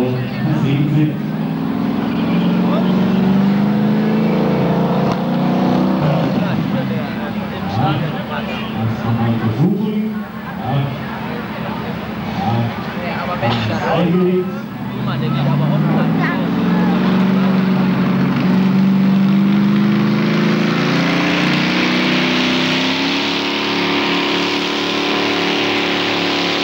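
A loud tractor engine roars and revs up and down.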